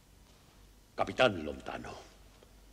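A middle-aged man speaks loudly and sternly.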